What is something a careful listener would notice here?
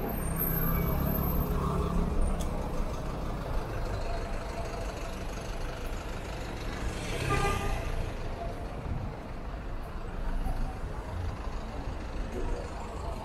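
A bus engine idles and rumbles close by.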